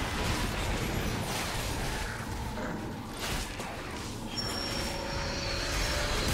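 Video game combat effects crackle and clash.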